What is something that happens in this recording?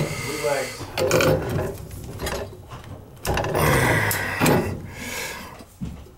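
Metal pliers clink against a valve.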